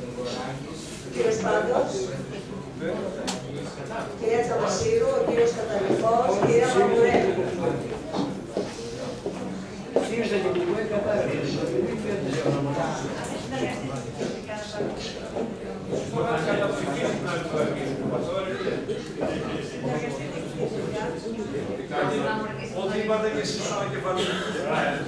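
A man speaks steadily into a microphone in a room with some echo.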